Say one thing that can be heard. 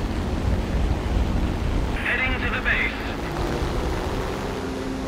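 A propeller plane's engine drones steadily.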